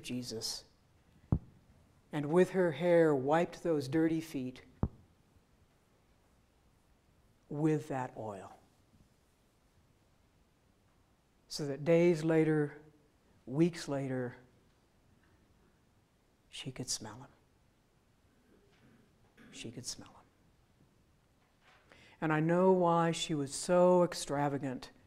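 An elderly woman speaks slowly and calmly into a microphone, with pauses, in a large echoing room.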